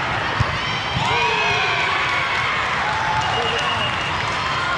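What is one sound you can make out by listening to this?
Young women players call out and shout across the court.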